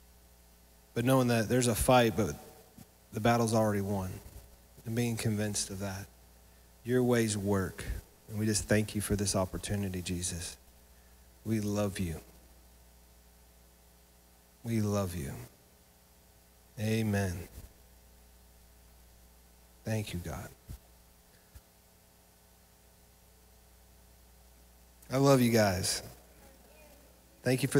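A man speaks with animation through a microphone, in short bursts with pauses, in a room with some echo.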